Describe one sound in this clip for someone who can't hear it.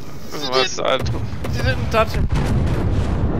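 Heavy naval guns fire with loud booms.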